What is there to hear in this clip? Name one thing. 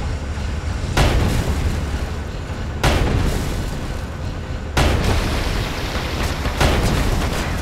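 A heavy cannon fires with booming blasts.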